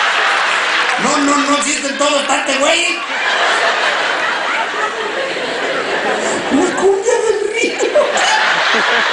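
A man speaks animatedly into a microphone, heard through loudspeakers in a large hall.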